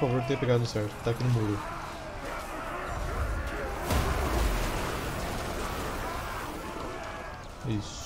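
A crowd of soldiers roars and shouts in battle.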